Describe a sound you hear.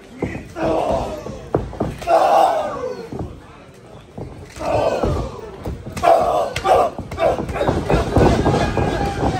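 A crowd shouts and cheers in an echoing hall.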